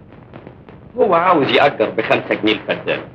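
A middle-aged man talks into a telephone with animation.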